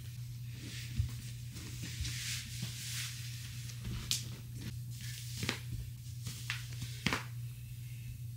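Fabric rustles as clothes are pulled on.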